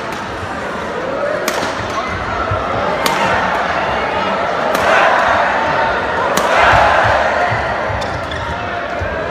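A crowd cheers and shouts, swelling louder.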